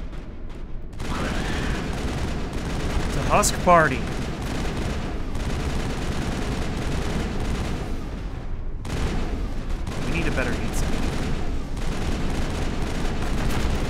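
Guns fire in rapid, steady bursts.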